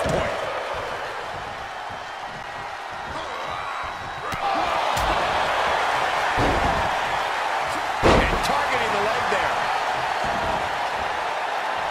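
A large crowd roars and cheers, growing louder partway through.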